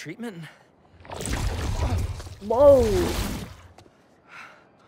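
A creature's tentacles lash and thud in a struggle.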